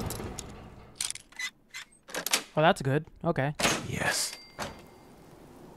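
A lock pick scrapes and clicks inside a lock.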